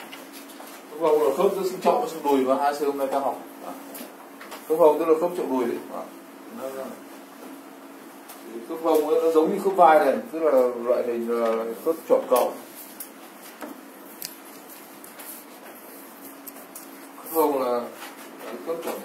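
A man lectures with animation, close by.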